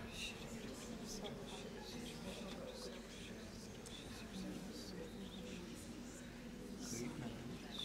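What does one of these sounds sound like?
A large crowd murmurs and talks in an echoing hall.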